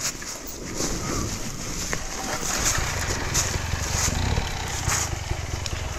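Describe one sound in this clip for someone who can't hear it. A dirt bike engine rumbles and revs close by.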